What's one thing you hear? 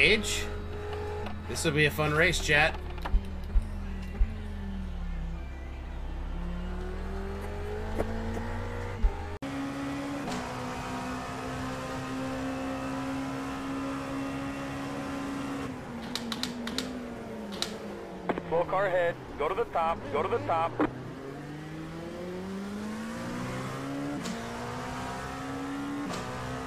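A racing car engine roars, rising and falling in pitch with gear changes.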